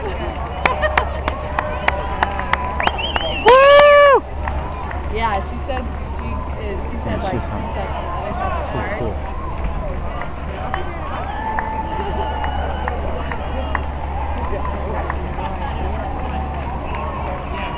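Many runners' shoes patter on the pavement.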